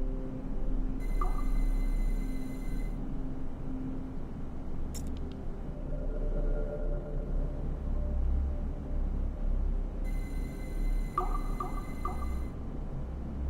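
Soft electronic chimes ring out from a game.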